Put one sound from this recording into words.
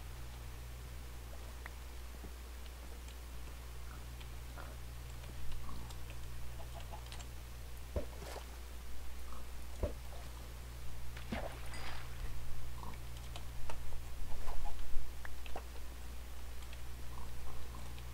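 A pickaxe chips at stone in short taps.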